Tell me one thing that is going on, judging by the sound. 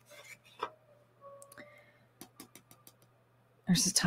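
Cards slide and tap softly against each other.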